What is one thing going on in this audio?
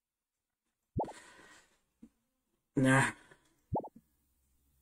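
A short electronic chime beeps as a menu choice is made.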